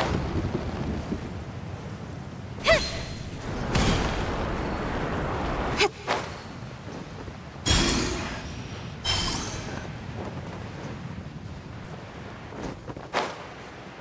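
Wind rushes past while gliding through the air.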